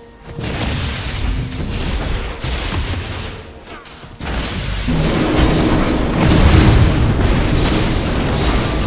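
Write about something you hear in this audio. Game combat effects clash and blast in quick bursts.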